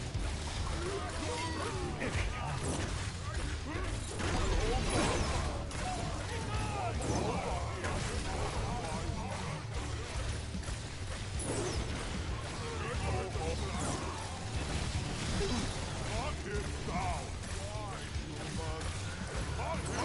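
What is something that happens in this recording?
Magic spells blast and crackle in a fantasy game.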